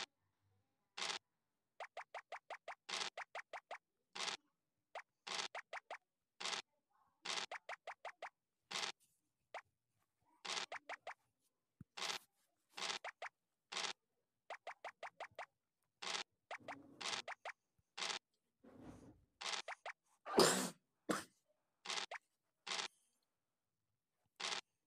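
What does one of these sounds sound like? Game dice rattle as they roll.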